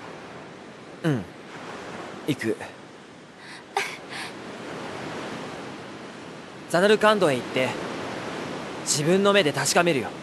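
A young man speaks calmly and hesitantly.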